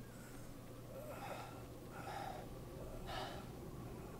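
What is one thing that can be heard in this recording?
A young man gasps and groans in pain close by.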